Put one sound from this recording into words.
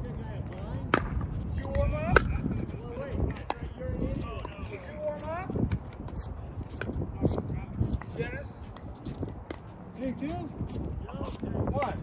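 Paddles pop sharply against a plastic ball in a quick rally.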